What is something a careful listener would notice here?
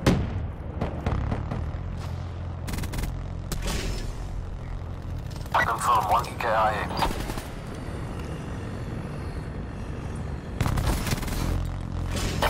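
Gunshots from a rifle crack in quick bursts.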